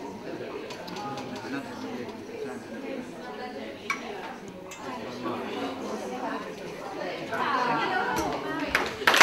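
A crowd of men and women murmurs and chats in a large echoing hall.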